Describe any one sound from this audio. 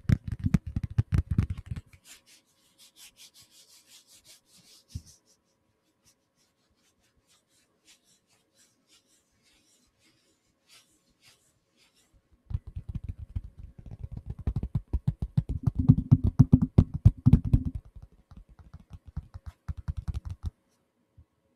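Fingers tap and scratch rapidly on a microphone, close up.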